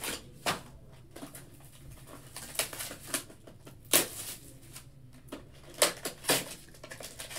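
Hands tear open a cardboard box of trading cards.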